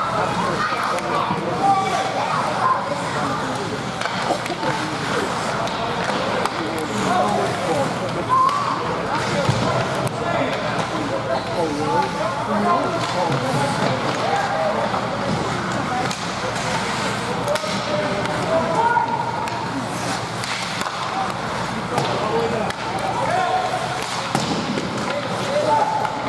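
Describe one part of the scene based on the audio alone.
A crowd of spectators chatters and calls out in a large echoing arena.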